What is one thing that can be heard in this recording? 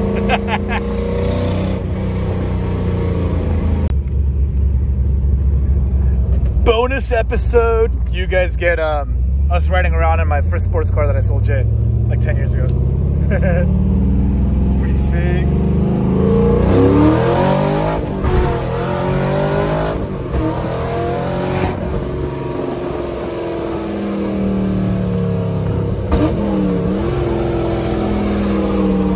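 A car engine hums and revs up through the gears, rising in pitch as the car speeds up.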